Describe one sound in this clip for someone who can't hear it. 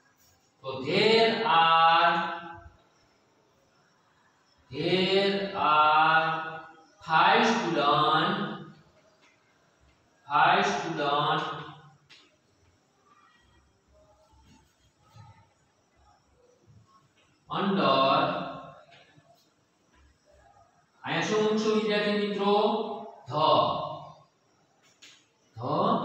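A man speaks clearly and calmly in short phrases.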